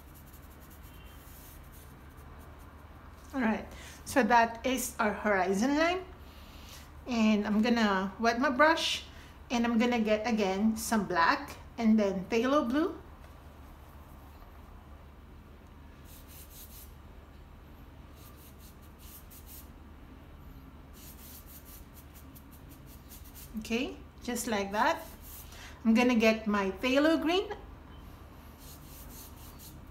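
A paintbrush swishes softly across paper.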